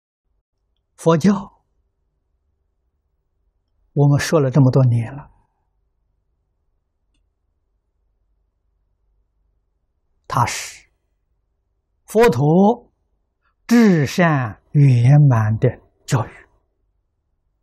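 An elderly man speaks calmly and slowly, with long pauses, close to a microphone.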